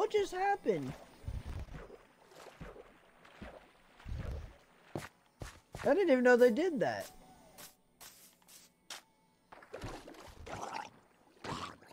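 Water splashes and bubbles as a swimmer moves through it.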